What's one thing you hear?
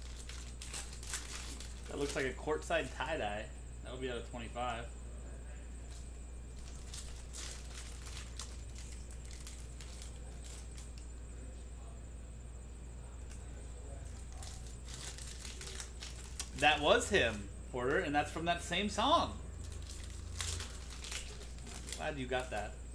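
Foil wrappers crinkle and tear in hands.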